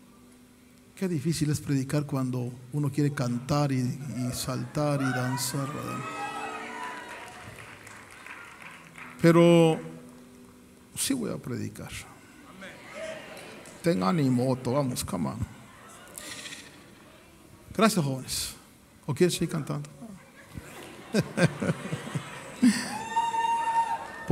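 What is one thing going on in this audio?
A middle-aged man speaks with animation into a microphone, heard through loudspeakers in a large echoing hall.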